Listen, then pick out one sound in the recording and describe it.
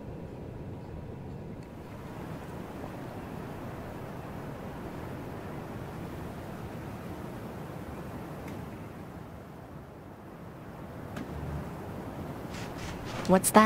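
Wind blows steadily across open sand.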